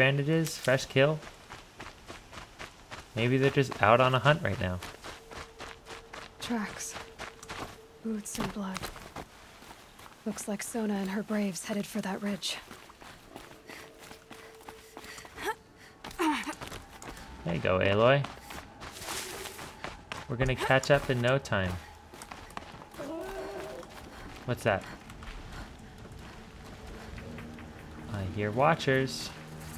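Footsteps run and scrape over rock.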